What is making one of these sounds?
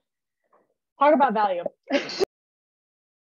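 A young woman laughs through an online call.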